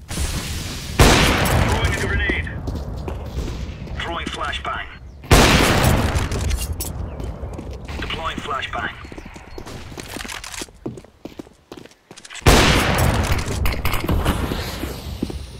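A sniper rifle fires single booming shots, each followed by a long echo.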